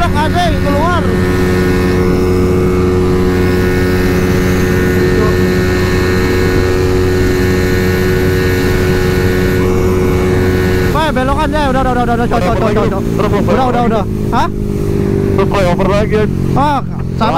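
A motorcycle engine hums steadily as it rides along a road.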